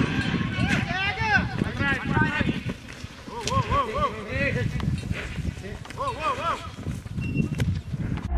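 A bull's hooves thud on the ground as it bucks.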